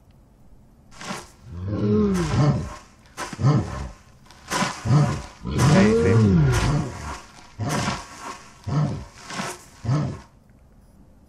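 A monstrous creature snarls and shrieks loudly.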